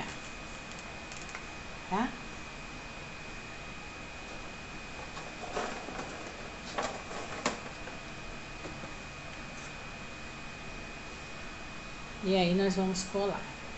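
Small objects tap and rustle on a hard countertop.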